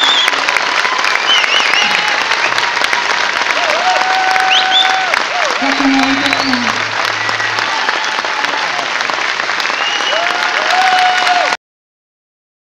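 A string band plays a lively tune on fiddles, bass and accordion in a large hall.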